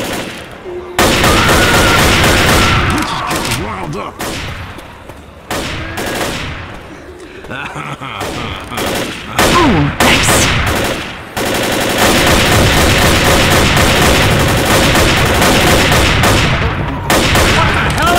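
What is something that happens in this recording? A sniper rifle fires sharp, loud shots one after another.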